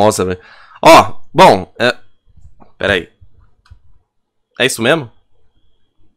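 A man speaks with animation, loud and close through a microphone.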